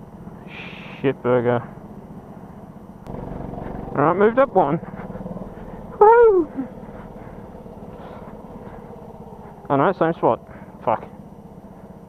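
A go-kart engine revs up and down in short, loud bursts.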